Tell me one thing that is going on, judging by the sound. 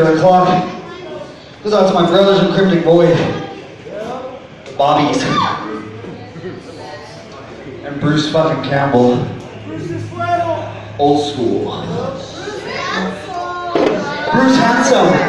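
A crowd of people talks and shouts loudly nearby, in a noisy room.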